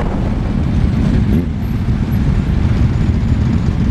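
Several motorcycle engines rumble close by in slow traffic.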